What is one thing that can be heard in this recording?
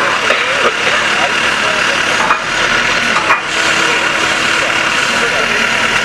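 A crowd chatters steadily outdoors in the distance.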